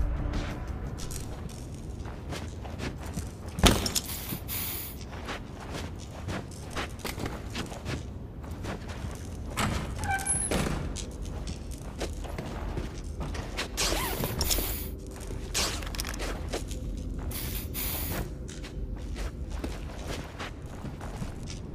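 Footsteps thud softly on carpet and tile floors.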